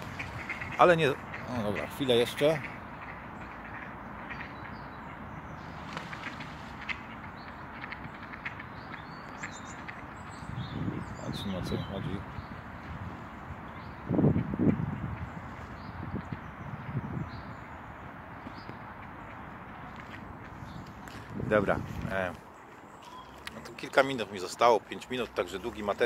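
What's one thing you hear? A man talks calmly close to the microphone, outdoors.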